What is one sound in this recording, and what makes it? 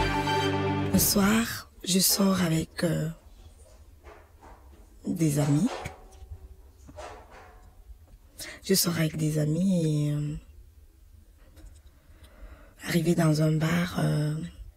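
A woman speaks calmly and close by, with pauses.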